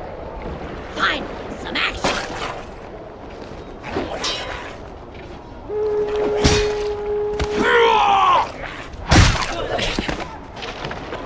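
Swords clash and strike in a brief fight.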